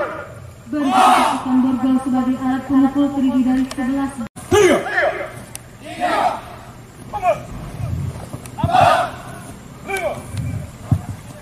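A group of men shout loudly in unison outdoors.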